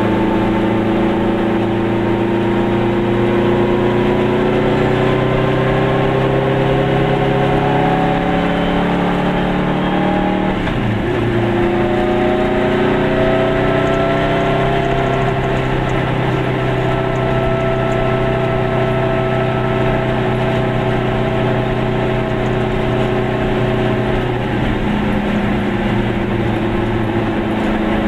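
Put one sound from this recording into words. A car engine hums steadily from inside, with its pitch shifting as the car changes speed.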